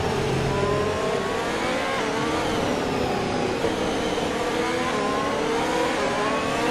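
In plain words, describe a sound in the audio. A racing car engine whines at high revs, shifting gears.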